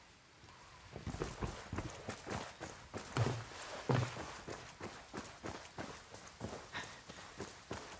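Footsteps crunch over dry ground.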